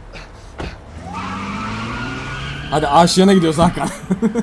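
A car engine revs and roars as the car speeds away.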